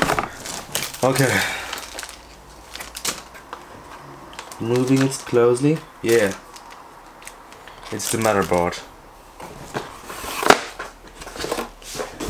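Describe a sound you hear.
Cardboard packaging rustles and scrapes as it is handled.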